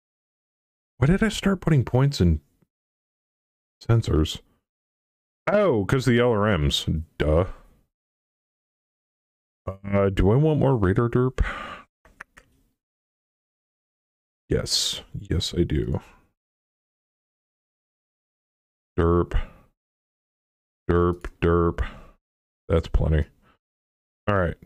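A man talks casually into a close microphone, in short bursts with pauses.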